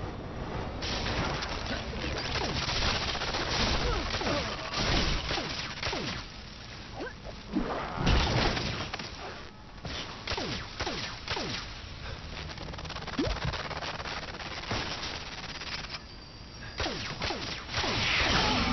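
Blasts and zaps go off.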